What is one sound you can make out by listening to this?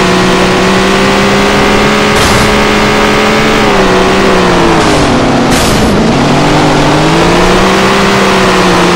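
A race car engine roars loudly, its pitch dropping as it slows and rising again.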